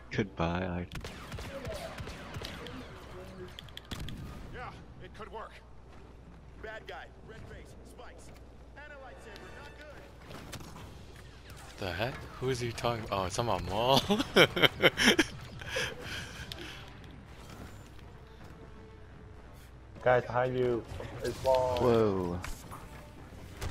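Blaster guns fire in quick bursts.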